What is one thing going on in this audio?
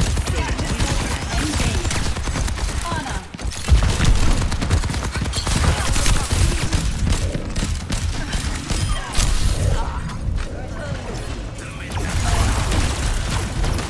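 Rapid gunshots crack and boom in a game.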